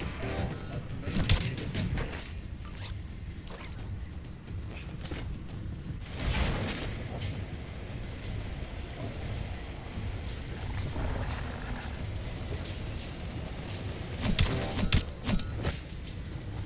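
Gunfire and explosions crack and boom in short bursts.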